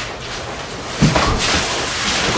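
Two sumo wrestlers slam their bare bodies together with a heavy thud.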